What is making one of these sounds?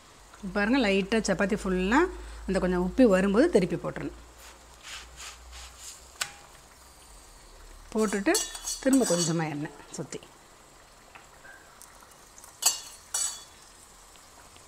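Flatbread sizzles softly on a hot pan.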